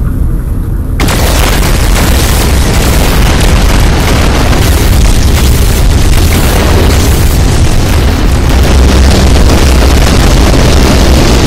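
Explosions boom and crackle loudly in quick succession.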